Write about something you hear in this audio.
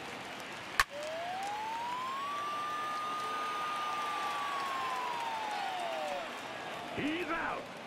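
A stadium crowd cheers.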